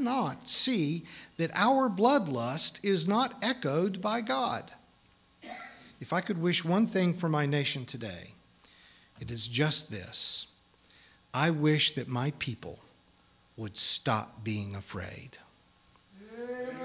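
A middle-aged man speaks calmly through a microphone in a reverberant room.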